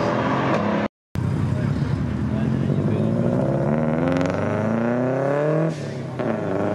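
A car engine revs hard and roars as the car accelerates away.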